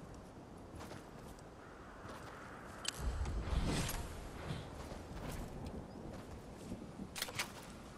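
Footsteps crunch on sand as a runner moves along.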